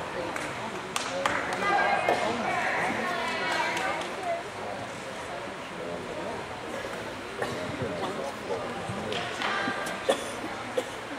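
Feet thump on a wooden beam in a large echoing hall.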